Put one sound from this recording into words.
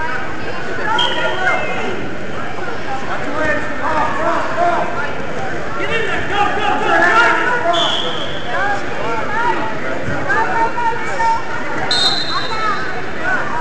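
A referee blows a whistle in short blasts.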